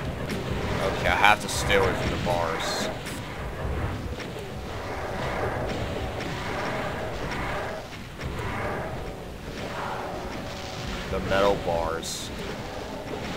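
Monsters growl and screech nearby.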